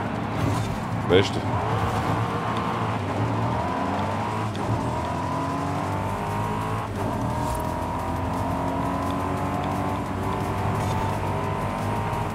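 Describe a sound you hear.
A race car engine roars and climbs steadily in pitch as the car speeds up.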